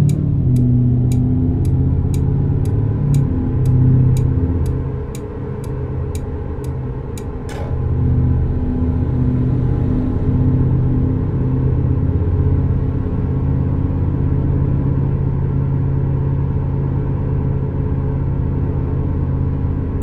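A car engine hums steadily while driving at speed.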